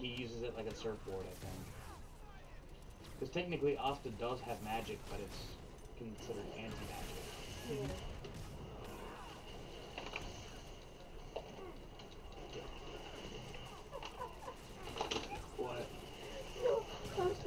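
Young men and a young woman talk and laugh with animation close to a microphone.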